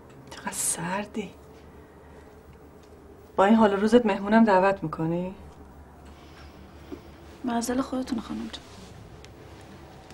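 A second woman answers in a calm voice up close.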